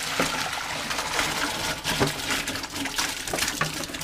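Live shrimp patter and splash into a plastic colander.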